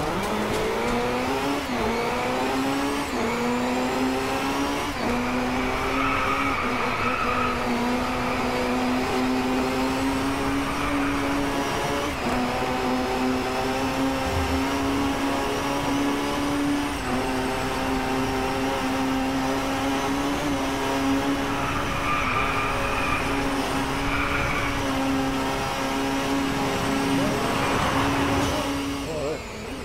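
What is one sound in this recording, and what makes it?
A racing car engine roars loudly, shifting up through the gears as it speeds up.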